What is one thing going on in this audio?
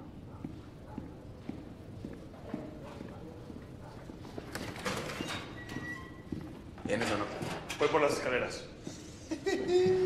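Footsteps echo in a hallway.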